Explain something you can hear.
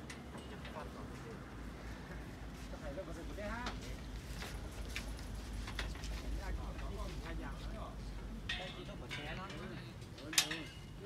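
Metal scaffolding clanks and knocks.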